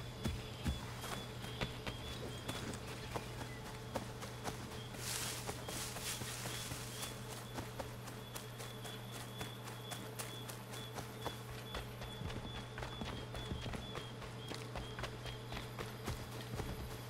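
Footsteps rustle quickly through tall grass and brush.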